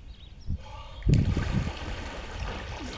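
A man plunges into pool water with a loud splash.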